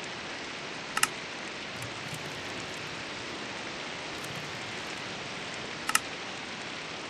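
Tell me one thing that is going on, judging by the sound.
A menu button clicks sharply.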